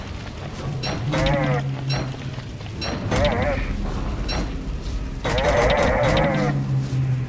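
Creatures in a game trade sharp, quick hits.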